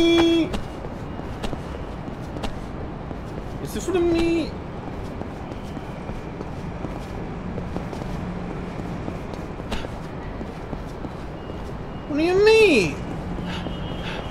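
Footsteps run across a hard rooftop.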